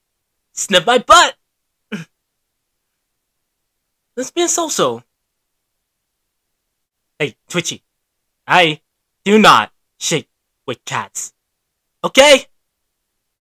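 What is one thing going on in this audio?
A young man speaks with animation, close into a microphone, in short bursts with pauses.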